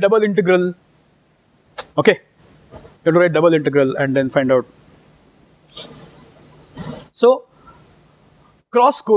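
A middle-aged man lectures calmly through a clip-on microphone, with pauses.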